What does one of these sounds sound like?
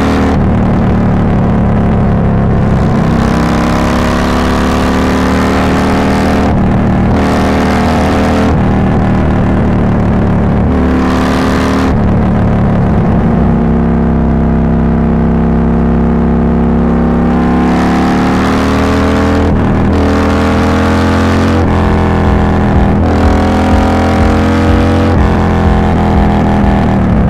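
A motorcycle engine rumbles steadily at highway speed.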